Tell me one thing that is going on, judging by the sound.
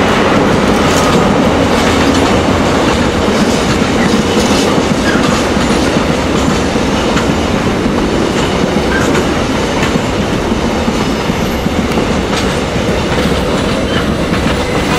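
Train wheels clatter and click over rail joints.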